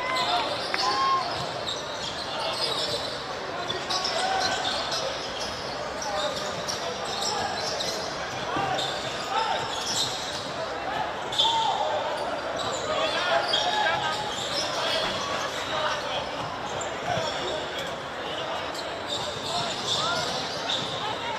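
Players shout and call to each other across an open outdoor field.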